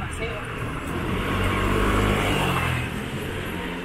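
A motor scooter engine hums as it passes nearby.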